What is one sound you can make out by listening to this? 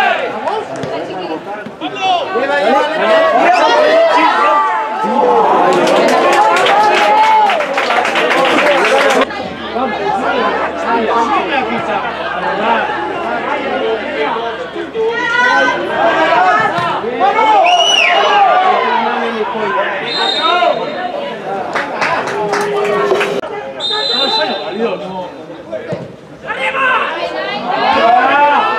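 Players shout to each other on an outdoor pitch.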